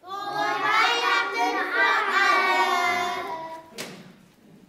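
A group of young children sing together loudly and close by.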